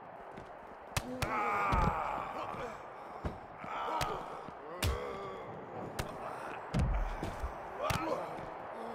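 Punches land with sharp smacks.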